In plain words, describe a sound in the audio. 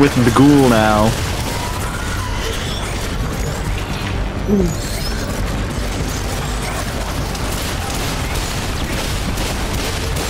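Gunfire from a game rattles in bursts.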